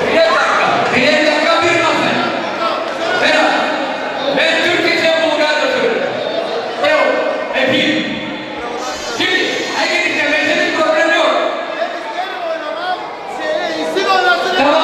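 An elderly man sings loudly into a microphone over a loudspeaker, in a large echoing hall.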